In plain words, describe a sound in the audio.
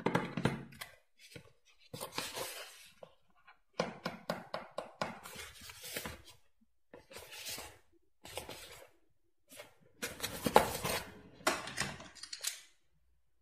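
A cardboard box rustles and taps as hands turn it over.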